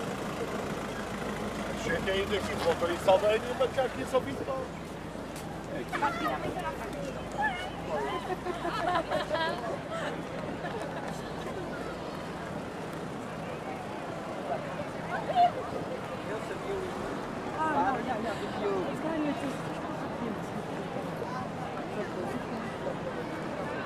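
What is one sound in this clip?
A crowd murmurs far off.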